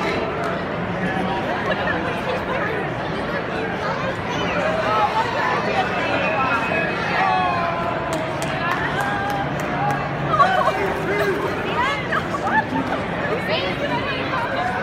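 A crowd of men and women chatter loudly all around in a large echoing hall.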